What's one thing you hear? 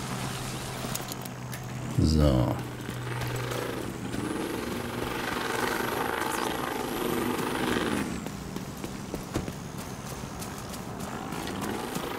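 Footsteps run over grass and pavement.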